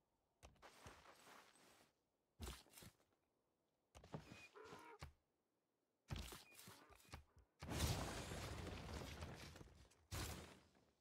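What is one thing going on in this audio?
A young woman talks into a close microphone in bursts, with animation.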